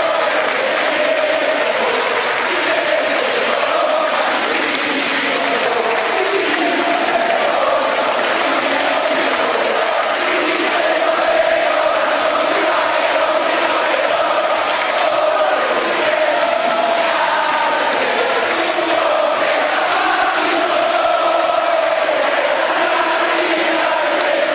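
A crowd of men and women chants loudly in unison.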